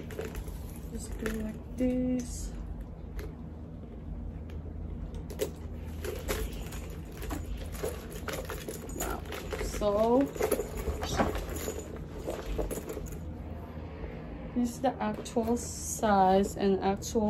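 A metal chain strap rattles and clinks.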